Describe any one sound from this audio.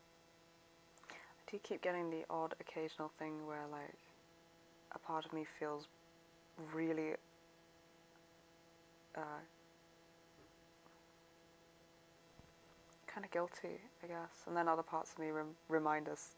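A young woman speaks calmly and close to a microphone, with pauses.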